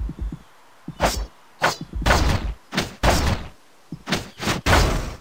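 Sharp slashing sound effects ring out as a sword strikes.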